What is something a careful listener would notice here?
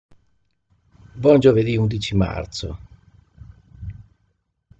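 A middle-aged man speaks calmly into a computer microphone, heard as over an online call.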